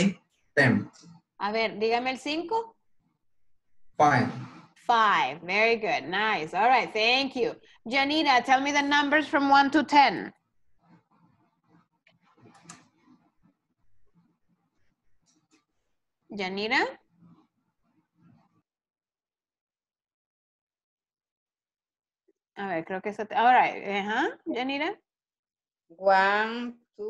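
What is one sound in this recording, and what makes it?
A middle-aged woman speaks calmly through an online call, in short bursts with pauses.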